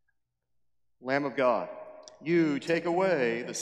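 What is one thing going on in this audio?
A man sings a chant through a microphone in an echoing hall.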